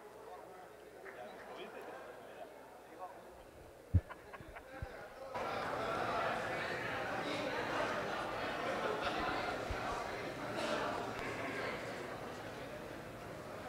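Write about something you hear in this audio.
A large crowd of men and women chatters loudly in an echoing hall.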